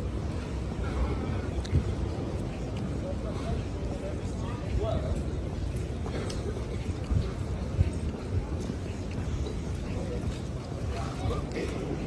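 Footsteps tap on wet pavement close by.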